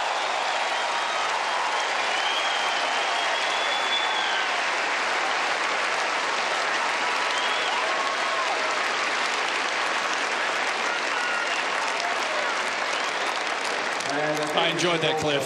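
A large crowd cheers and applauds loudly in a big open arena.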